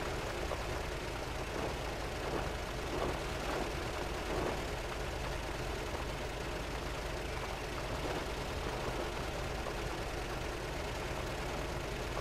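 Tyres squelch and churn through thick mud.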